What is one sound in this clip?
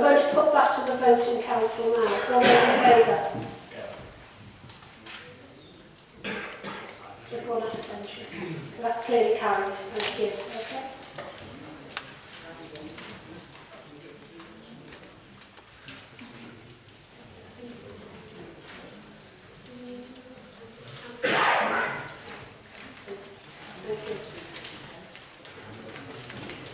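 An elderly man speaks calmly through a microphone in a large echoing chamber.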